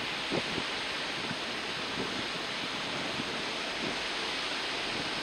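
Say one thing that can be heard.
Wind blows hard across the open water.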